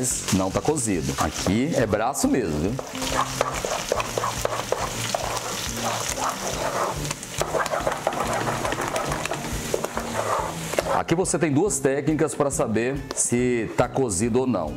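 A wooden spoon stirs thick batter in a metal pot with soft, wet squelches.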